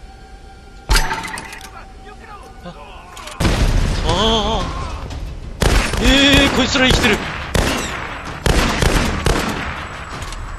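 A rifle fires loud, sharp shots, one after another.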